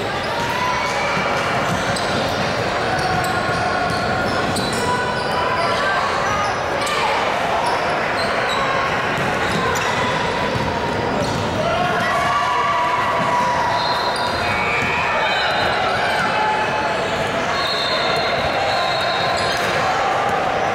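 Young women call out to each other across an echoing hall.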